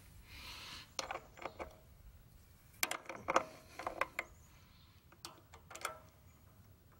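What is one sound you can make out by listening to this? Small metal parts click and rattle as a hand works the controls of a small engine.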